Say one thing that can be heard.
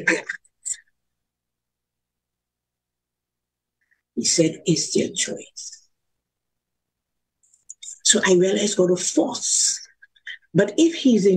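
An older woman speaks with animation over an online call, in bursts with pauses.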